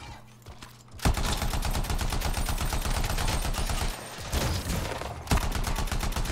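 A rapid-fire gun shoots in fast, loud bursts.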